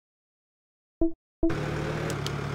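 A menu button clicks.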